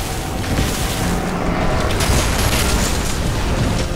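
A loud explosion booms and debris crashes down.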